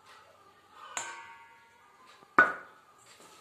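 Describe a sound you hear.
A metal cup clinks against a steel bowl with a ringing tone.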